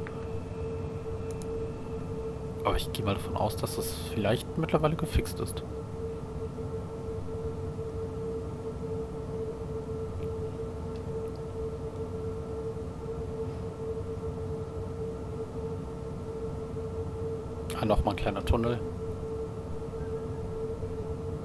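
A train rumbles steadily along the tracks with a low electric hum.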